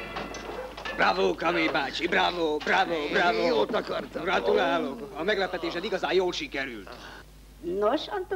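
A man speaks with agitation close by.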